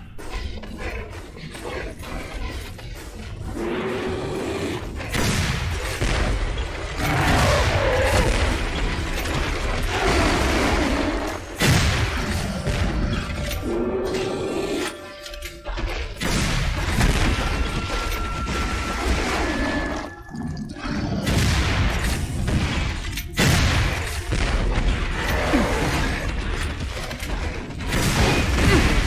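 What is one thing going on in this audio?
A heavy gun fires in loud bursts.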